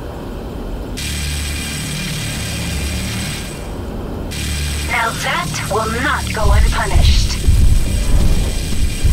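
A laser beam fires with a steady buzzing hum.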